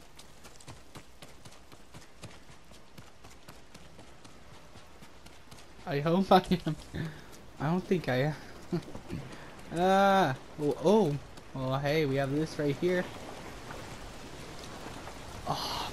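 Footsteps patter quickly on stone and earth.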